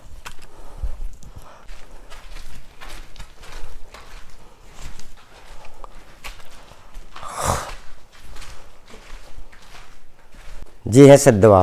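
Footsteps crunch on a gritty stone floor.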